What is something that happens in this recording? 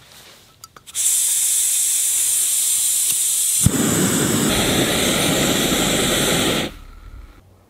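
A gas stove burner roars steadily.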